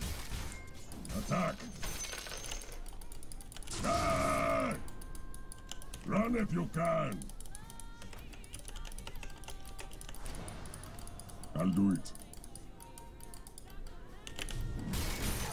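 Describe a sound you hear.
Electronic game sound effects whoosh and chime.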